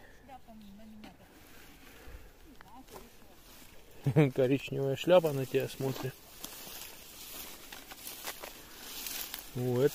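Footsteps rustle through dry leaves and grass.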